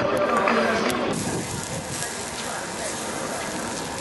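Meat sizzles on a grill.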